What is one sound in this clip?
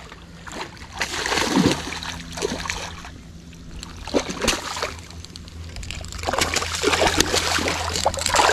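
A fish splashes and thrashes in shallow water.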